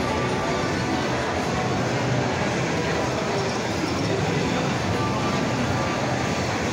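Slot machines chime and jingle steadily.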